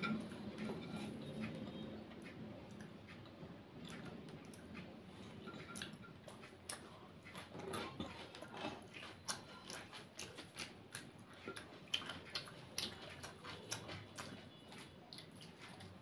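A woman chews food with soft, wet mouth sounds, close by.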